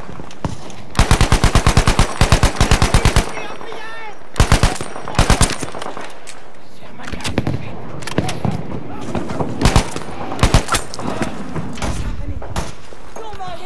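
Rifle shots crack sharply, several times.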